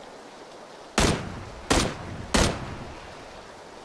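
A rifle fires three loud, echoing shots in quick succession.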